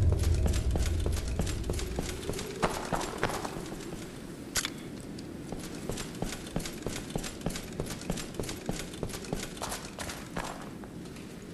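Heavy armoured footsteps thud and clank on stone.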